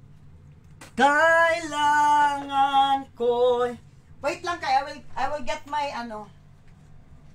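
A woman sings loudly nearby.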